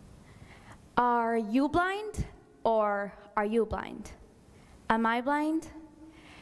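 A young woman speaks with animation through a microphone in a large hall.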